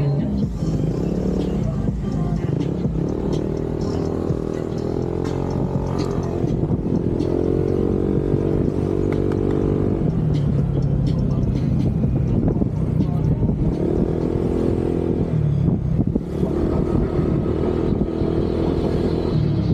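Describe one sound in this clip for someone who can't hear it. A motorcycle engine hums and revs steadily up and down close by.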